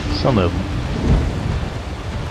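A dragon breathes a burst of fire with a whoosh.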